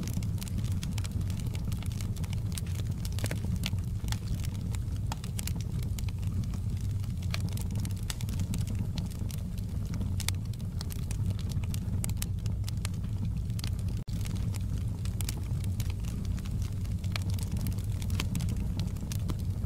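A wood fire roars steadily.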